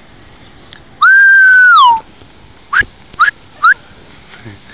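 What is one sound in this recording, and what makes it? A young child shrieks.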